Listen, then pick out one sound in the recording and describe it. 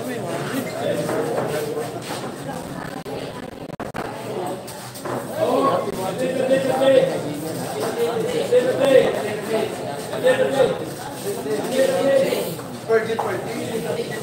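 A crowd of young men chatters nearby.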